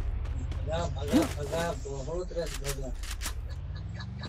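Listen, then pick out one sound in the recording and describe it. A gun fires several shots in quick bursts.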